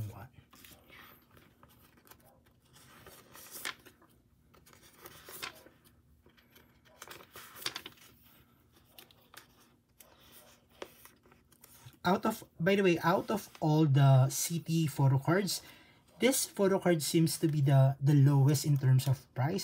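Plastic sleeves rustle and crinkle as cards are slid in and out.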